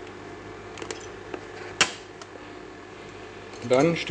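A plastic lid snaps shut with a click.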